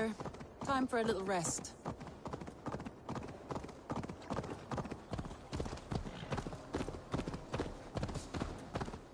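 A horse's hooves clop steadily on a path.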